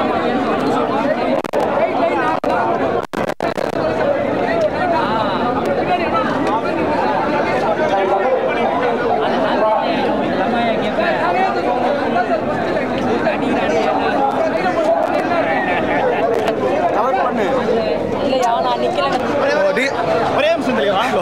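A large crowd chatters and cheers loudly outdoors.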